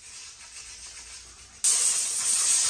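A cloth rubs against a wheel rim.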